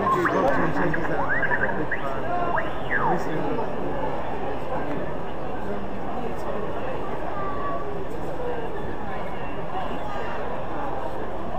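A marker scratches across glossy paper.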